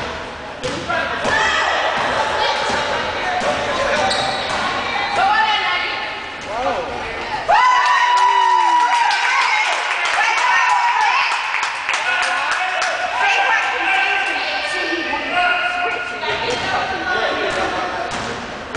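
Young girls shout and call out across the court.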